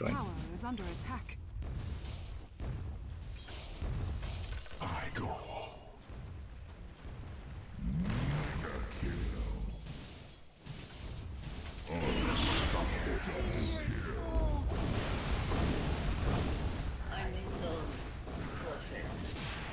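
Spells and attacks in a game crackle and whoosh.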